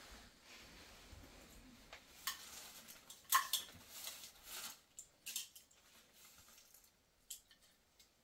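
Dishes clink on the floor.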